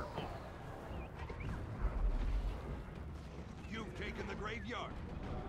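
Game combat sounds of blows and spell blasts ring out.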